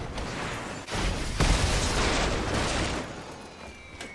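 A loud explosion bursts and rumbles away.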